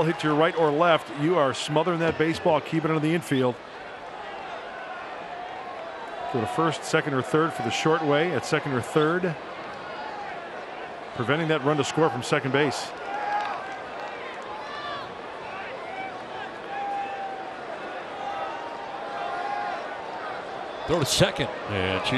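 A stadium crowd murmurs in a large open space.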